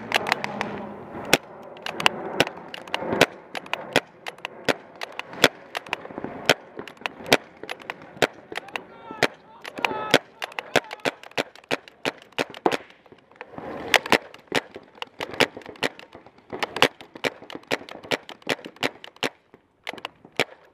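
A paintball marker fires in rapid bursts of sharp pops close by.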